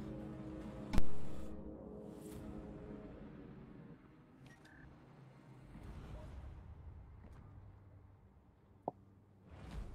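Soft game menu clicks sound as buttons are pressed.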